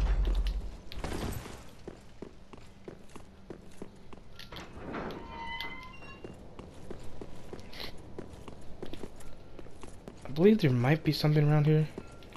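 Armoured footsteps clatter on stone.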